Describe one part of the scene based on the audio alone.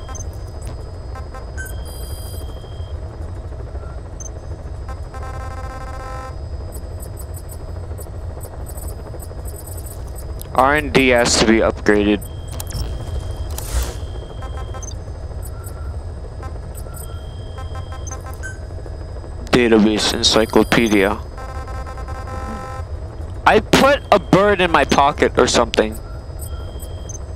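Soft electronic beeps sound as menu items are selected.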